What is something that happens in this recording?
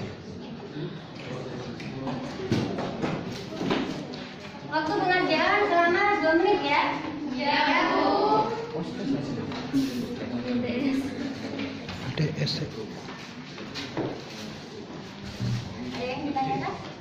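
A young woman speaks calmly to a group.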